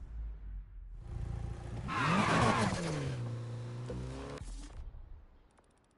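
A car engine revs loudly and roars off.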